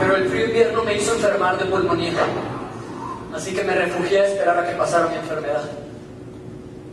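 A man speaks with feeling in a large room.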